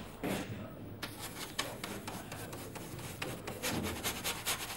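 A paintbrush brushes against a rough surface.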